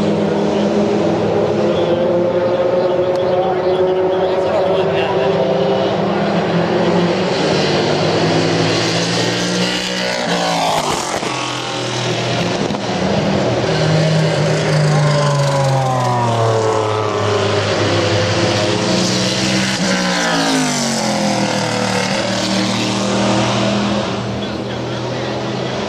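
Racing car engines roar and rise and fall in pitch as the cars pass by.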